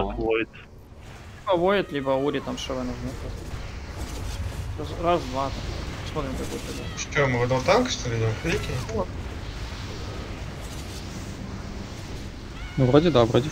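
Magic blasts and explosions crackle and roar in a fight.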